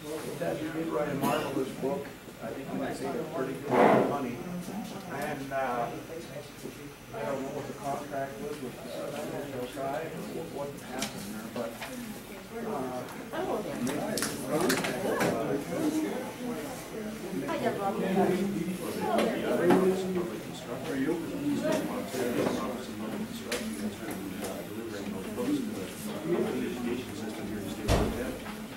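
A man talks calmly in a room with a slight echo.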